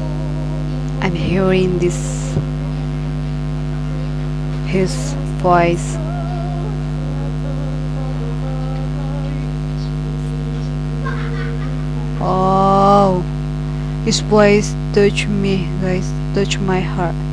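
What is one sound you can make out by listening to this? A young woman sings along with feeling into a headset microphone.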